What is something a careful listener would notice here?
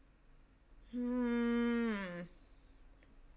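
A young woman sings out a long, falling note close to a microphone.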